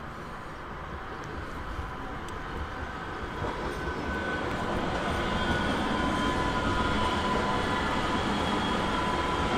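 An electric train rolls past on the tracks, its hum and rumble growing louder.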